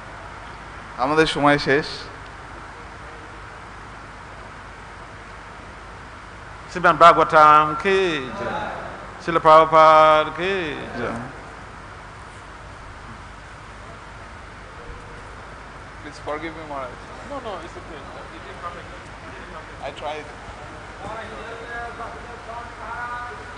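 A man speaks loudly through a microphone in short bursts, with pauses between them.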